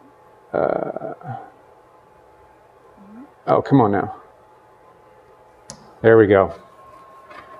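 A young man speaks in short bursts nearby.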